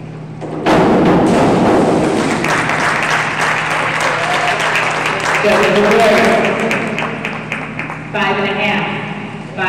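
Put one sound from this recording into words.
A crowd cheers and applauds in an echoing hall.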